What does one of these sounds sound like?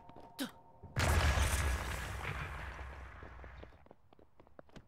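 A bomb explodes with a booming crackle that slowly fades.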